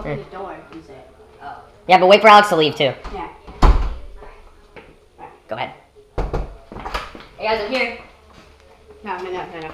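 A door rattles open and thuds shut.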